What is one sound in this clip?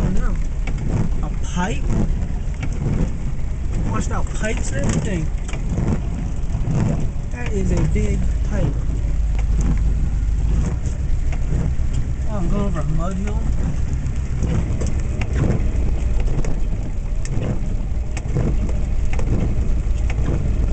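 Tyres rumble and bump over rough ground.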